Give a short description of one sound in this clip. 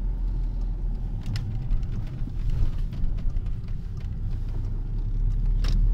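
A car engine hums steadily from inside the car while driving.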